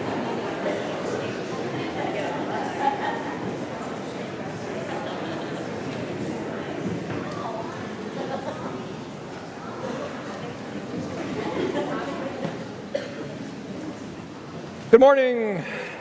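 Many men and women chat and greet each other in a large echoing church.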